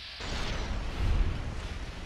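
An energy weapon fires with a sharp zap.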